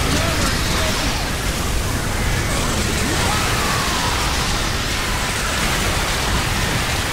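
A rapid-fire gun blasts continuously.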